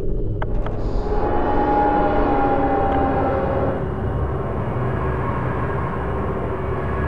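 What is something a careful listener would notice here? An elevator hums steadily as it moves.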